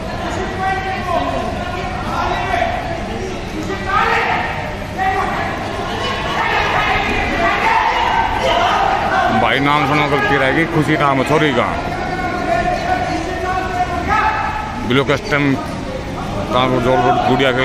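Men nearby shout and call out encouragement in an echoing hall.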